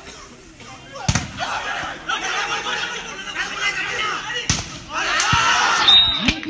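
A crowd of spectators shouts and cheers outdoors.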